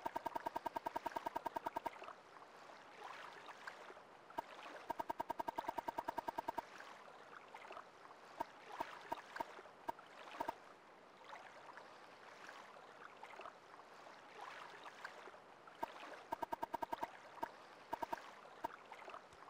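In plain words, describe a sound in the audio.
Quick clicking ticks rattle off in fast bursts as a menu list scrolls.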